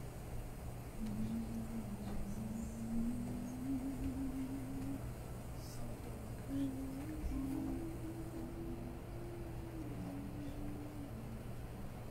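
A man sings a slow tune.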